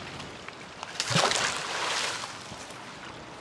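Something splashes heavily into a river.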